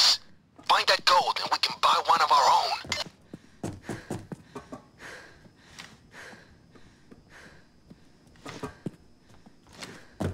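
Footsteps thud on stairs and a hard floor.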